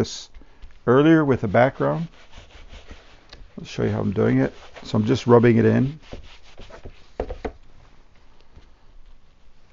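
A sponge dabs and rubs softly on canvas.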